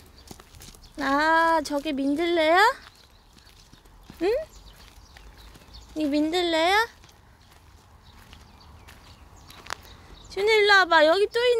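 A young child calls out in a high, sing-song voice nearby.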